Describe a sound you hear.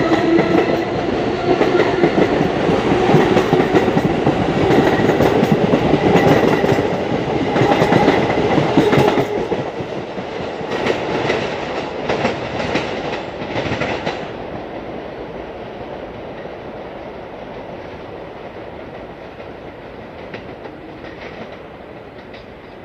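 A subway train rumbles past close by, its wheels clattering on the rails, then fades into the distance.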